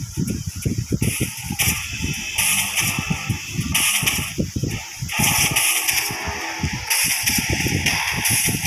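Magic blasts whoosh and crackle in bursts.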